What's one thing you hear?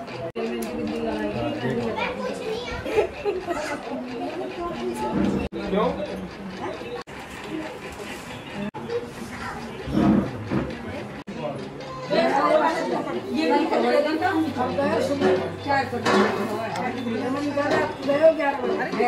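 Several women and men talk and chatter nearby.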